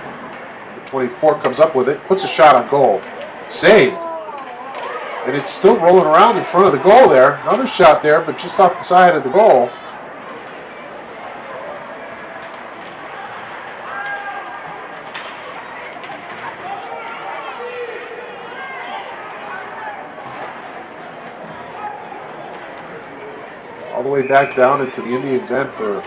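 A crowd cheers and shouts loudly in an echoing arena.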